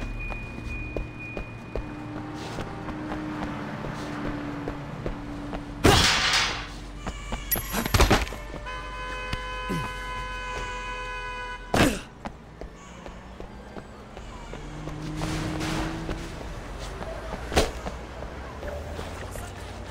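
Footsteps run across hard ground.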